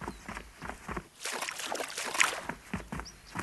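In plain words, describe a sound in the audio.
Water splashes as someone wades through a stream.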